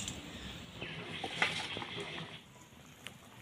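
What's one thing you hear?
Liquid pours into a pan.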